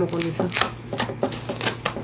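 Scissors snip through foam.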